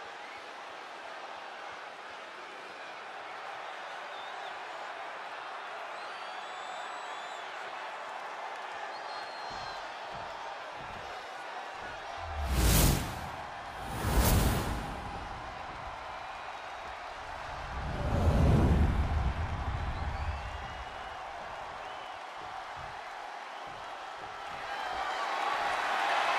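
A large arena crowd cheers and murmurs steadily throughout.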